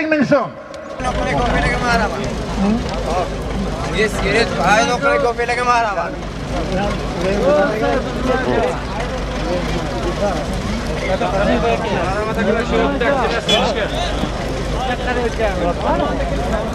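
A large outdoor crowd of men murmurs and chatters.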